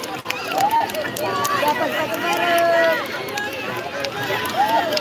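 Children chatter and shout excitedly outdoors.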